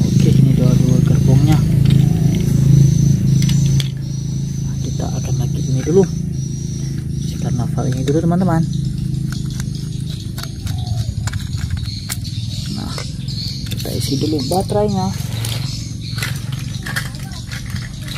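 Plastic toy parts click and rattle as they are handled.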